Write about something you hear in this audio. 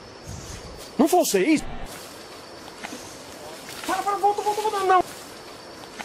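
A man shouts out in alarm outdoors.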